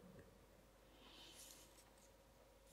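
Pages rustle as a woman turns them.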